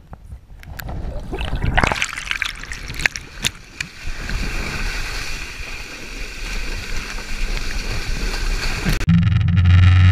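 Water splashes and rushes under water skis.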